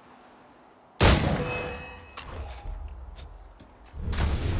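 A sudden loud burst of sound rings out and fades.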